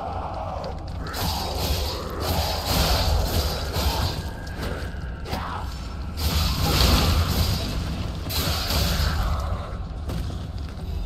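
Blades clash and strike repeatedly in a fight.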